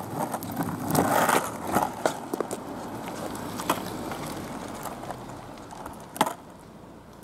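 A skateboard clacks against the ground.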